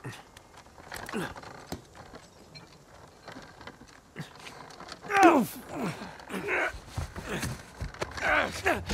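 A man grunts and strains with effort.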